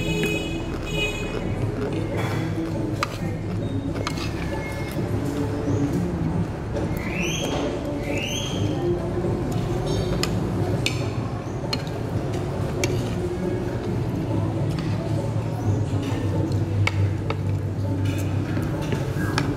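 A fork and spoon clink against a plate.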